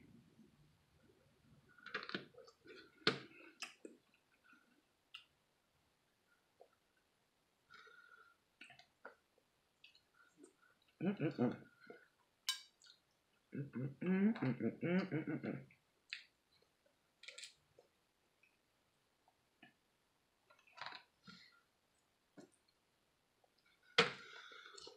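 A woman chews and smacks her lips close up.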